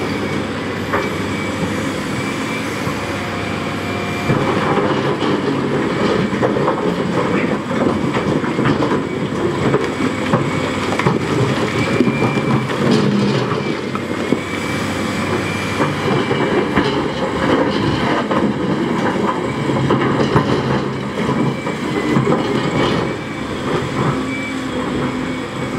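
A diesel excavator engine rumbles steadily close by.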